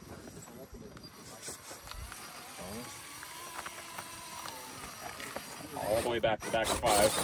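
A small electric motor whines as a toy car climbs over rock.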